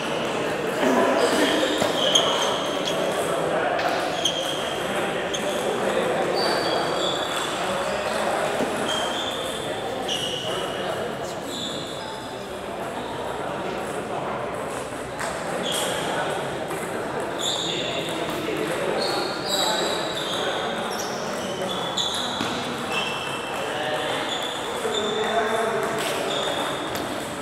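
Table tennis balls click rapidly on paddles and tables in a large echoing hall.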